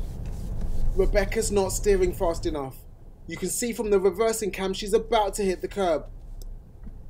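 A man speaks calmly inside a car.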